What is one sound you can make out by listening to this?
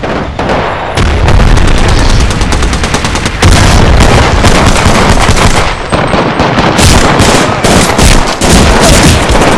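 Rapid gunshots crack loudly, close by.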